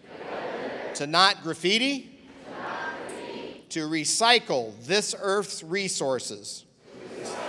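An elderly man speaks loudly and with animation through a microphone in a large echoing hall.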